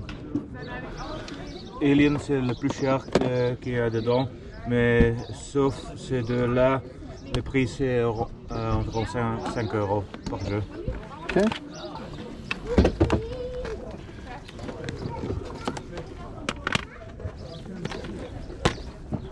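Plastic game cases clack and rattle as hands flip through them.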